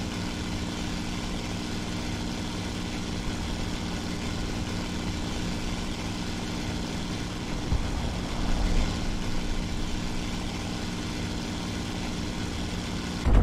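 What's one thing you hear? Wind rushes past an aircraft in flight.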